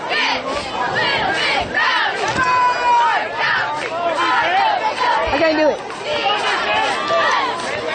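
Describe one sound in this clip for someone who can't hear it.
A crowd of spectators shouts and cheers close by, outdoors.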